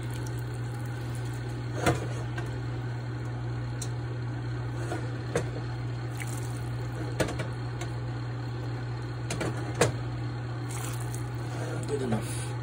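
Liquid simmers and pops softly in a pan.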